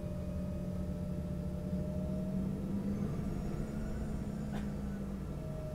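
A jet engine hums with a steady low drone from inside an aircraft cabin.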